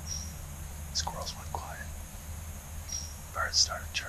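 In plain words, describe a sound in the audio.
A young man whispers quietly, close by.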